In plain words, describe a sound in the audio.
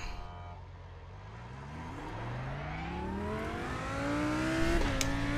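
A racing car engine revs higher and higher as it accelerates.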